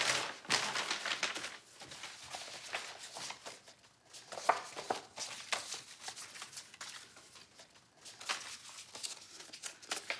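Photographs and papers rustle and slide as hands sort through them.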